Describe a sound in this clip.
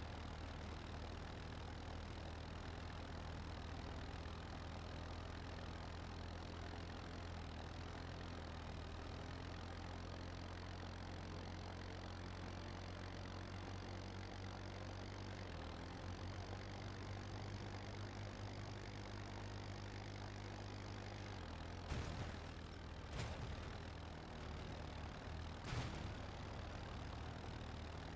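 Tyres rumble and crunch over dirt and gravel.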